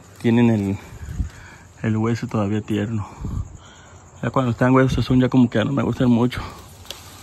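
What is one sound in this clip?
Leaves rustle as a hand pulls a branch.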